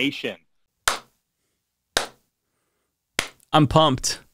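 A man claps his hands.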